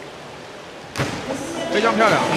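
Two divers splash into the water together.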